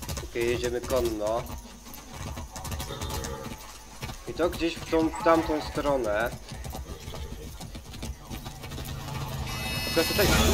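A horse's hooves clop steadily on a dirt road.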